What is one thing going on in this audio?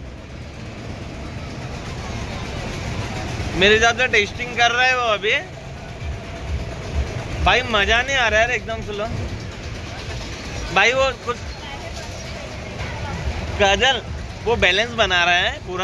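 A fairground ride rumbles steadily as it spins.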